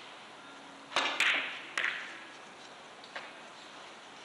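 Billiard balls clack against each other and the cushions.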